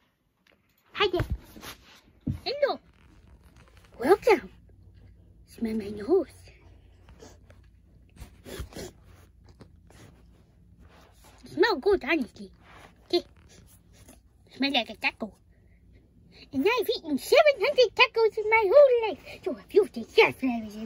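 A soft toy rubs and rustles close by.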